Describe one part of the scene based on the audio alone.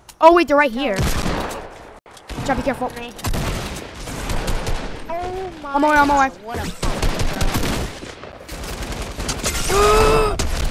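Game building and gunfire sounds crack and clatter.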